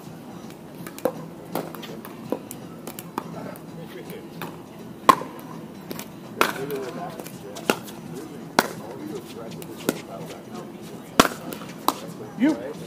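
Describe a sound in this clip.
Paddles smack a plastic ball back and forth in sharp pops.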